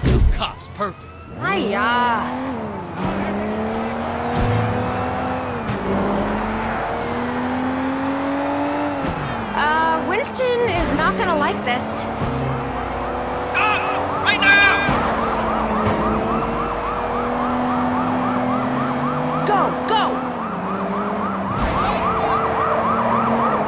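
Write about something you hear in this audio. A car engine revs hard and shifts through gears.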